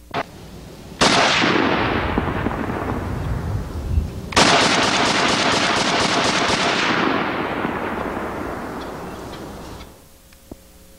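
A heavy machine gun fires long rapid bursts outdoors.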